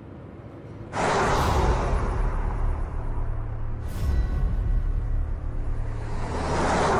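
A pickup truck's engine rumbles as it drives off down a road.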